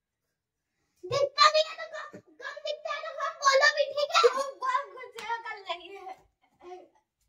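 A young woman talks close by with animation.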